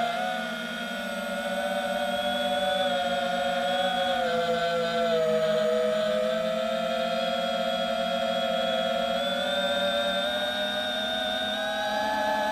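A small drone's motors whine loudly, their pitch shifting up and down as it flies.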